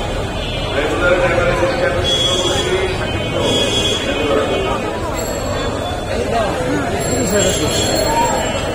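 Goats bleat nearby.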